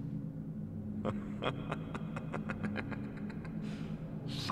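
A magic spell chimes with a rapid string of bright pings.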